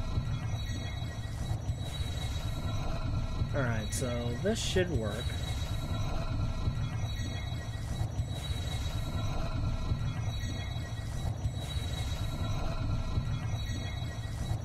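A low magical hum drones steadily.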